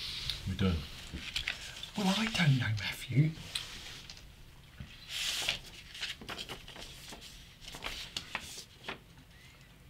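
Cards rustle in hands.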